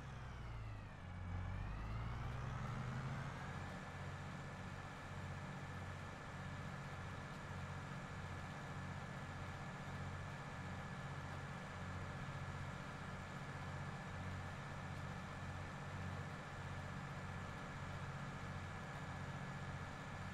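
A tractor engine hums steadily, dipping and then rising in pitch before settling.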